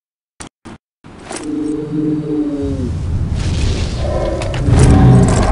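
A video game's weapon swings and clanks.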